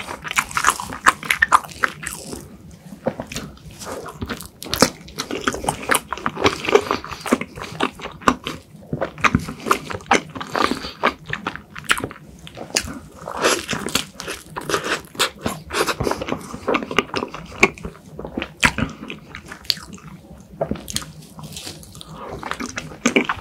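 A young man chews soft food wetly and loudly, close to a microphone.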